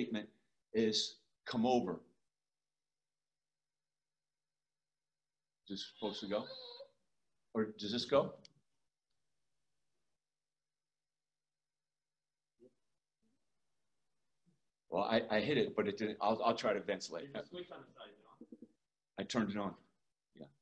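A middle-aged man speaks calmly through an online call, with pauses.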